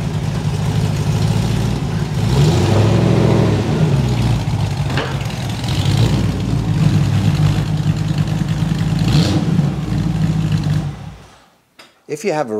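A car engine idles with a deep, throaty rumble.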